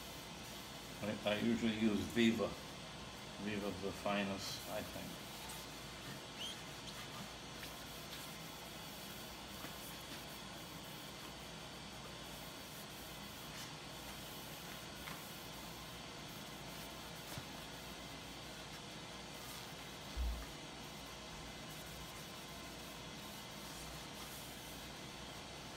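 A cloth rubs softly over a smooth wooden surface.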